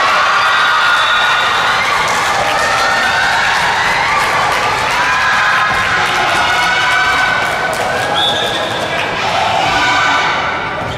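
Children shout and cheer loudly in a large echoing hall.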